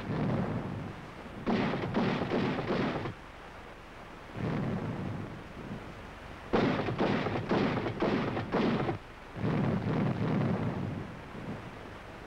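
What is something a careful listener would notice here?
Shells explode in the water with deep booming bursts.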